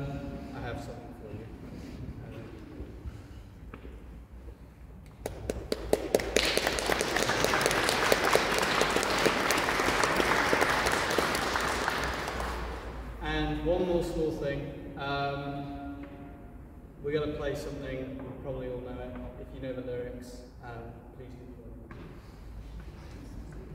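A man speaks calmly to an audience in a large echoing hall.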